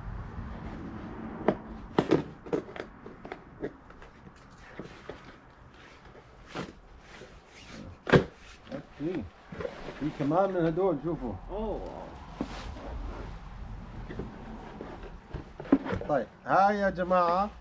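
Cardboard rustles and tape rips as a box is opened.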